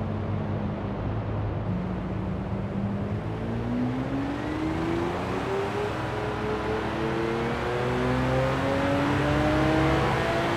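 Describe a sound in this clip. A car engine hums steadily and then revs higher and higher as the car speeds up.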